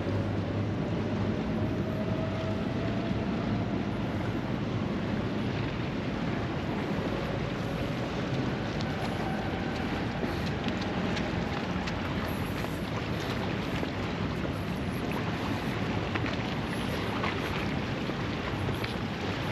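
A fast river rushes and churns against a stone embankment.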